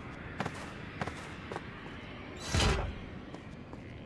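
A soft thud sounds as a body rolls on the ground.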